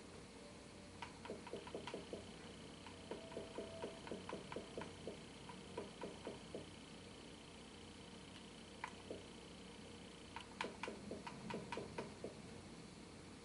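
Short electronic menu clicks tick in quick bursts.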